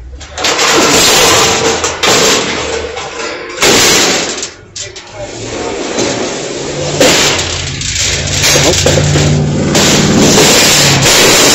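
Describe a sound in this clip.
Sheet steel shelf panels clatter and clang onto a scrap pile.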